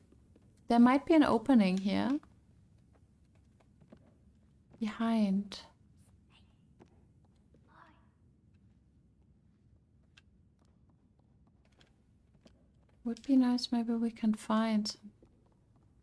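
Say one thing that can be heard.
A young woman talks casually into a close microphone, in short bursts.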